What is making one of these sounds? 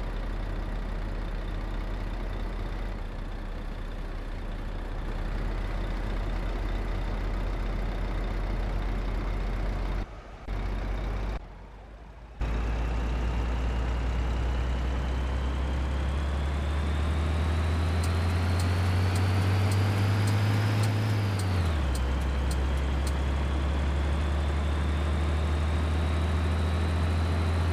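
A heavy bus engine drones, rising steadily in pitch as it speeds up, then drops as it shifts gear.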